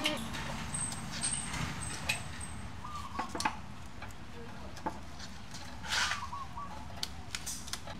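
Lumps of charcoal clink against a clay stove.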